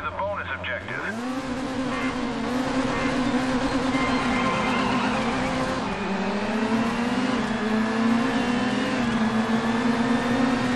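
A race car engine roars and revs higher as the car speeds up.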